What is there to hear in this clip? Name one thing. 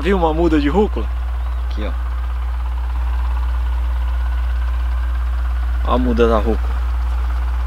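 A man speaks close by in brief bursts, with animation.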